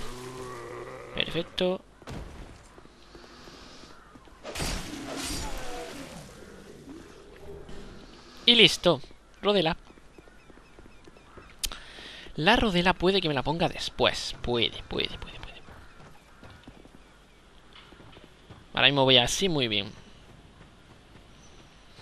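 Armoured footsteps thud on stone and grass.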